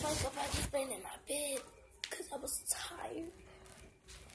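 A young girl sings loudly and playfully close by.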